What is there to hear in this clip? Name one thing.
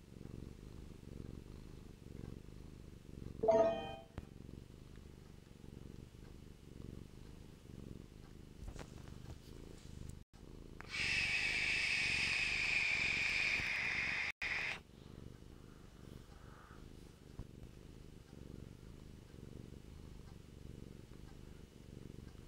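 A man talks quietly into a nearby microphone.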